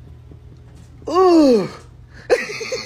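An elderly man groans loudly close by.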